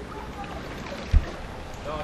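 Water gushes from a pump hose.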